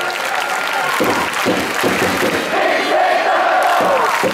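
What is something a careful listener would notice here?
Fans clap their hands in rhythm.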